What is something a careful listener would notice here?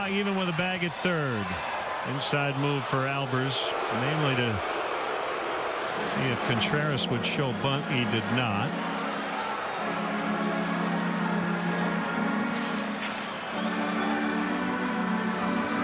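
A crowd murmurs in a large outdoor ballpark.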